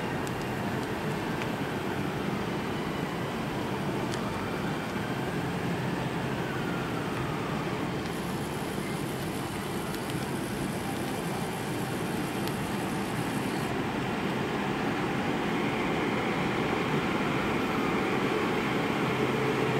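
A huge stadium crowd murmurs and roars, echoing under a roof.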